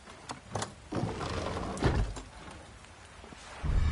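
A heavy wooden compartment slides and clunks open.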